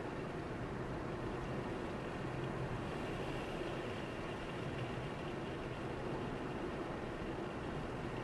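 A car engine drones steadily.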